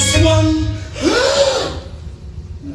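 A young man on stage calls out loudly in a rising and falling voice.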